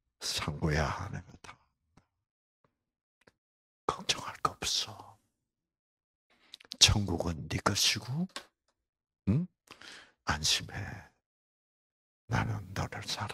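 An elderly man speaks with animation through a microphone, in bursts with pauses.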